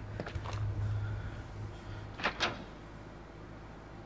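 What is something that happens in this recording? A heavy double door creaks open.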